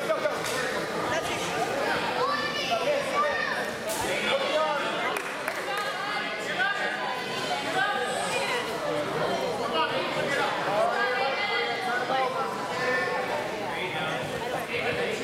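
A crowd of men and women chatters and calls out in a large echoing hall.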